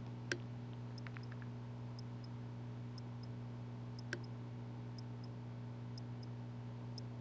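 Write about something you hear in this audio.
A short electronic beep ticks about once a second, counting down.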